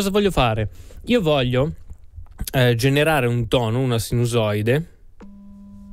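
A man speaks animatedly, close to a microphone.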